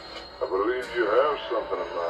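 A young woman speaks calmly, heard through a television loudspeaker.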